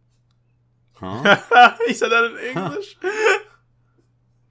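A young man laughs loudly through a headset microphone.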